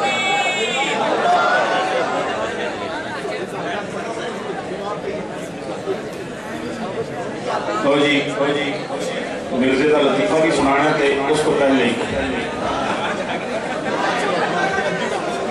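A middle-aged man chants fervently into a microphone, heard through loudspeakers in an echoing hall.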